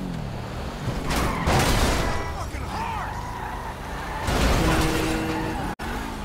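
A car crashes and scrapes against a wall with loud crunching noises.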